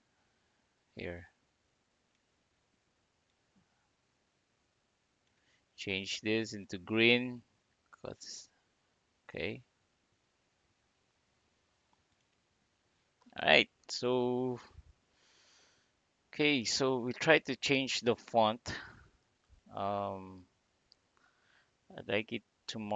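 A man speaks calmly and closely into a microphone, in short bursts with pauses.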